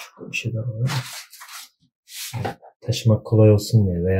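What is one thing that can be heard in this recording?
A plastic cable rustles as it is unwrapped.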